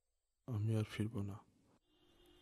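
A man speaks calmly into a phone, close by.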